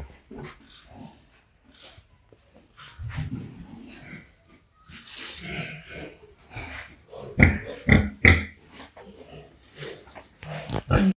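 Pigs' hooves scrape and shuffle.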